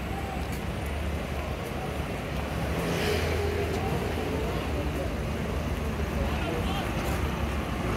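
Footsteps tap on a pavement nearby.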